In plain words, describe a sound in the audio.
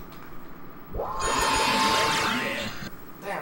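Loud electronic game sound effects swell with a whooshing rush.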